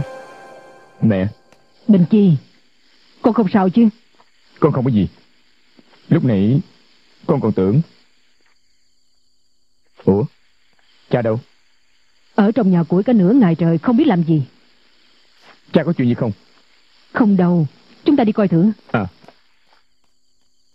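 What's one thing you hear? A young man speaks quietly and tensely, close by.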